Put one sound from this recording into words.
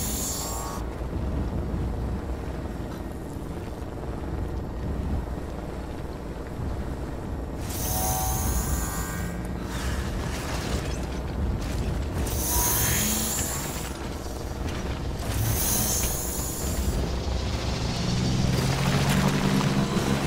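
A motorbike engine hums and revs.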